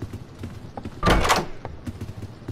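A wooden door bangs open with a short rush of noise.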